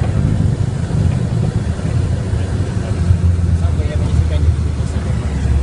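Wheels rumble over a runway as a plane speeds up.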